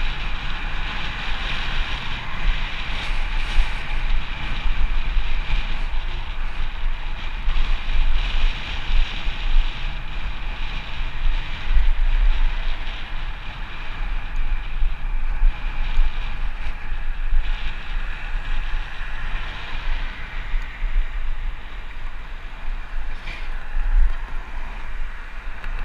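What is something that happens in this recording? Wind buffets loudly across a close microphone outdoors.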